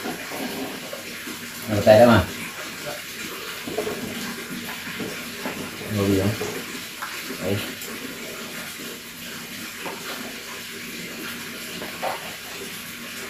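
Dishes and plastic bowls clatter softly.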